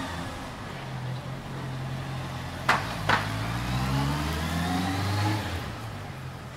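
A motor scooter engine rises in pitch as it pulls away along the street.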